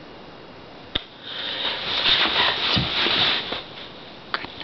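Fabric rustles and scrapes loudly close by.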